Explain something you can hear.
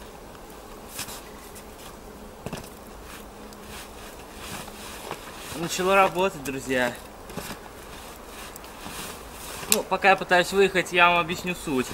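Snow crunches underfoot as a man pushes a bicycle.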